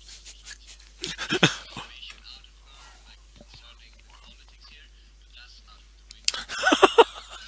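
A man laughs heartily over an online call.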